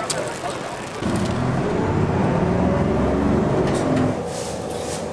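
A bus engine rumbles from inside a moving bus.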